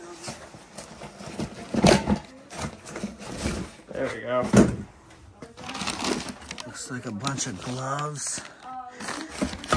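Cardboard flaps rustle and scrape as a box is handled.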